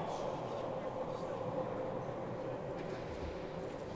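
A crowd of people murmurs quietly in a large echoing hall.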